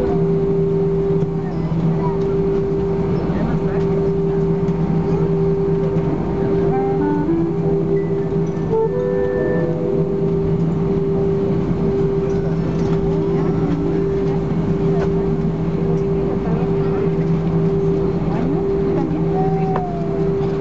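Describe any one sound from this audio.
Jet engines hum steadily with a low drone inside an airliner cabin as it taxis.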